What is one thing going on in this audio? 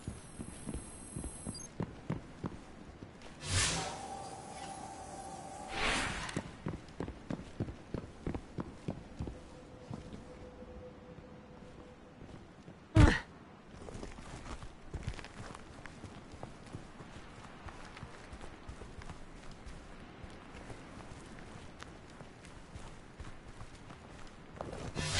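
Footsteps crunch steadily on loose ground.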